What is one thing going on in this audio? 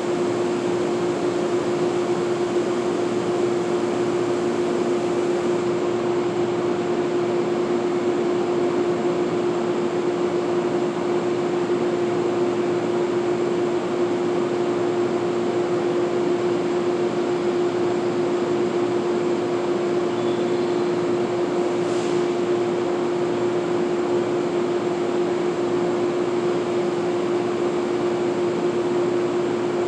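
A distant train hums steadily in a large echoing underground space.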